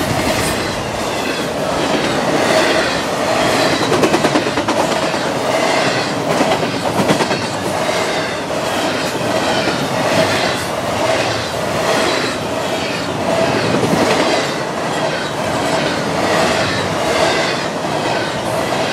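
Wheels squeal against the rails.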